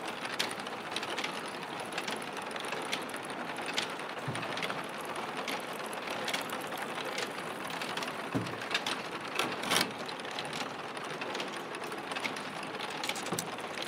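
Clay tiles clink and clatter as they are stacked on racks.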